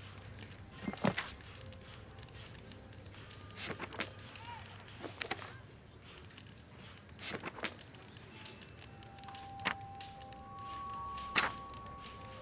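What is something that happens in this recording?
Paper pages turn over with a quick rustle.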